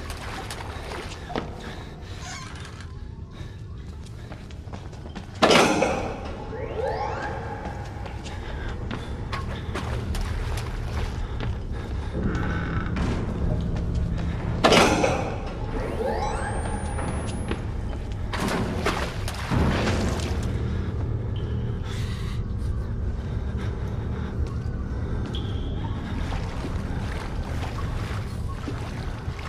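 A wooden door creaks on its hinges.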